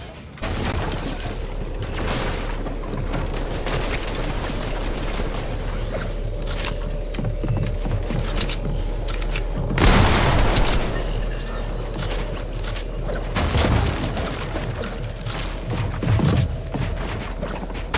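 Wooden walls are built with quick clattering thuds.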